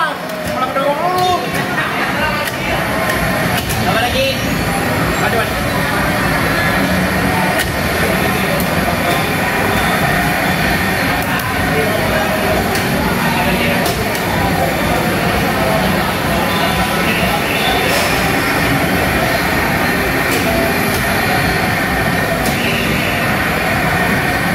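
Loud racing game engines roar and whine through arcade machine speakers.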